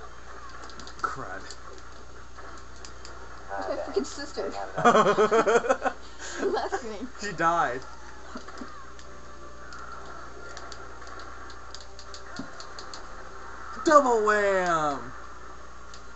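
Video game sound effects play in bursts through a television speaker.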